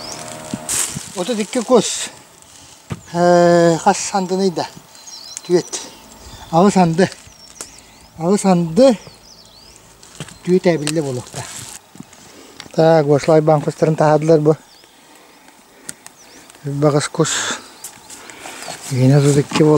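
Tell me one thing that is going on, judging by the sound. A man talks calmly and close by, in short phrases with pauses.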